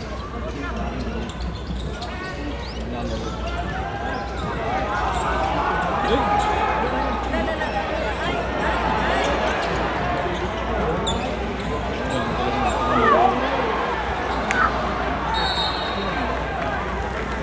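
A large crowd cheers and chatters in a big echoing arena.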